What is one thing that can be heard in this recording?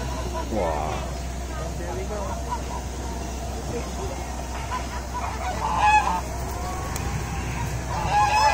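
Geese honk nearby.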